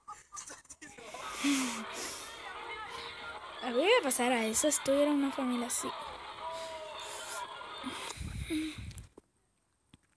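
A young boy talks and laughs with animation close to a microphone.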